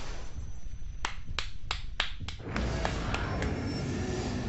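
Heavy blows land in quick succession.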